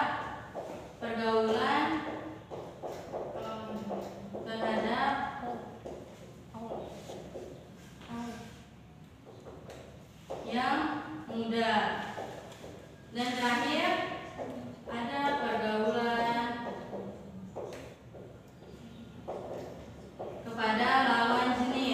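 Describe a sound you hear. A woman speaks at a steady pace, heard from across a room.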